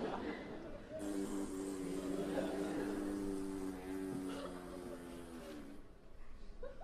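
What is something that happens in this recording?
A man hums a long, drawn-out note through closed lips.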